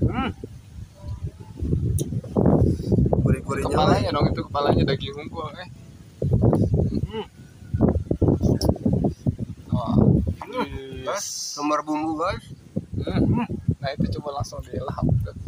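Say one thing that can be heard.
A young man talks calmly and close by.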